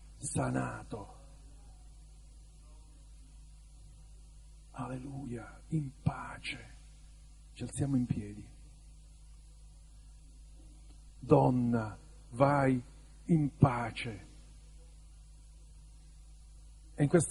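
An adult man speaks calmly and slowly, with long pauses, heard through a microphone.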